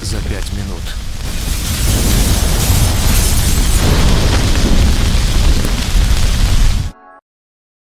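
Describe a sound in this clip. A large fire roars and crackles loudly.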